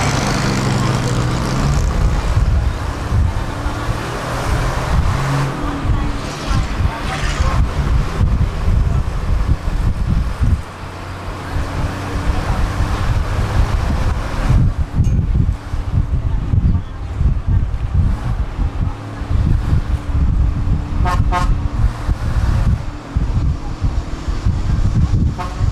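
Wind buffets and roars past an open bus window.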